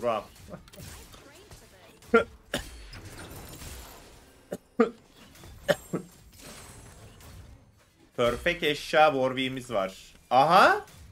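Magic blasts and weapon hits crack and thump in a fast fight.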